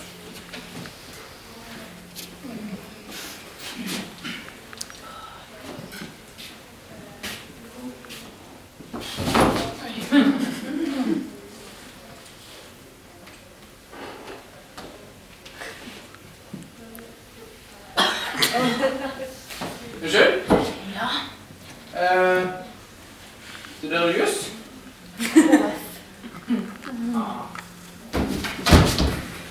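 A young woman speaks on a small stage, heard from the audience.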